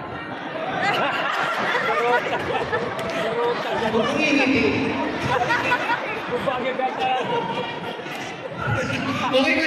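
An audience cheers and screams.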